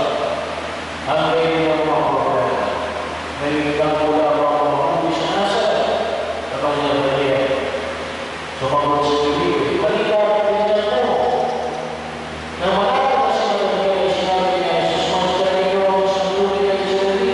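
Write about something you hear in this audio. A middle-aged man chants slowly through a microphone in an echoing hall.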